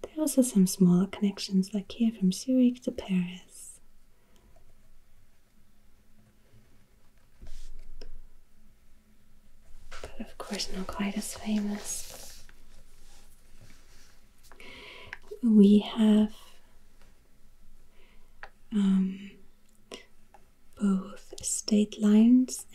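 A wooden stick taps and scrapes softly across paper.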